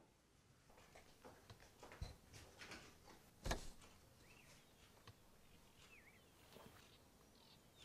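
A woman moves small objects about, making light knocks and clinks.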